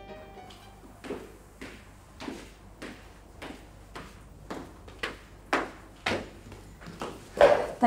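Footsteps click down stairs at a steady pace.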